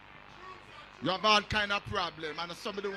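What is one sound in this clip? An elderly man speaks loudly and with animation through a microphone, heard over a loudspeaker in an echoing room.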